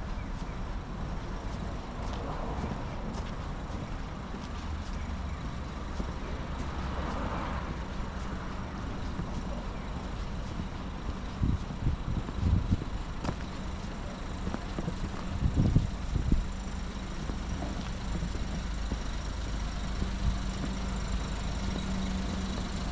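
Footsteps tap on paved ground at a walking pace.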